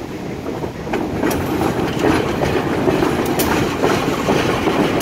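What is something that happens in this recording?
A diesel locomotive rumbles and clatters as it rolls past close by.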